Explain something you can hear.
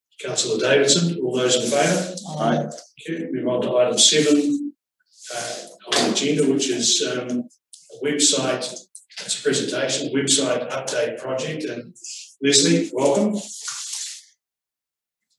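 A man speaks calmly through a meeting microphone.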